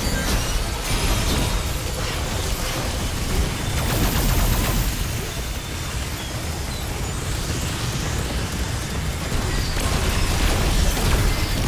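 An energy beam hums and crackles.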